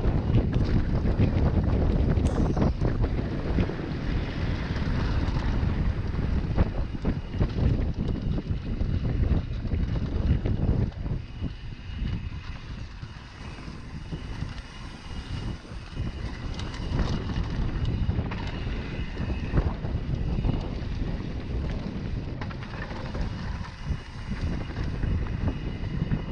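A bike's frame and chain rattle over bumps.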